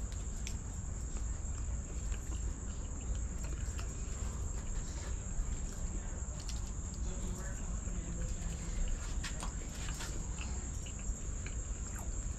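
A young man chews food.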